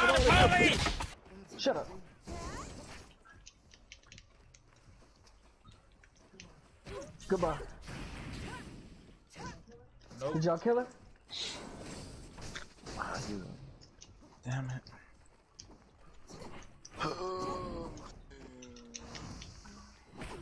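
Magic blasts whoosh and burst.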